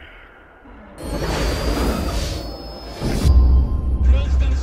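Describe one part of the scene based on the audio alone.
A bright electronic startup chime swells loudly.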